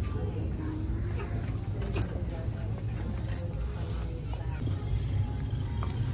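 A shopping cart rolls over a hard floor.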